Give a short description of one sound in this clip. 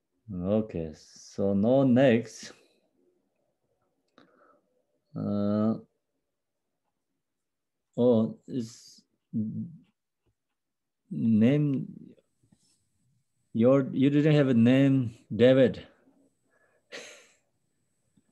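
A man speaks calmly through an online call, in bursts with pauses.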